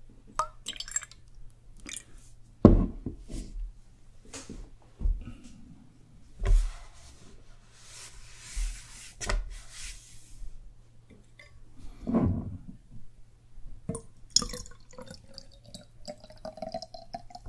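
Liquid pours from a small ceramic flask into a cup, rising in pitch as the cup fills.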